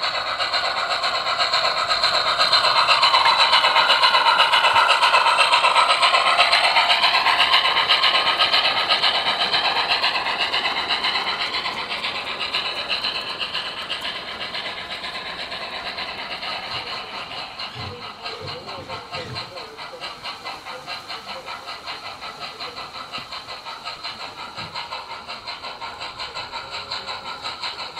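A model train clatters along its track.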